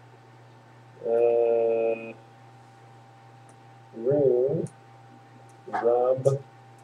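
A man speaks in short phrases close to a microphone.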